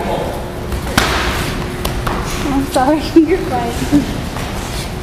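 Gloved punches land with dull thuds.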